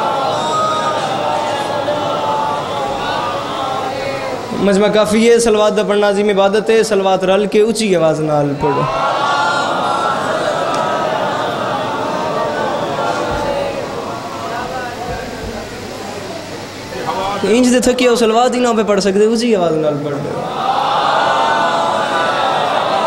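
A young man chants with feeling through a microphone, his voice rising into long, wailing sung lines.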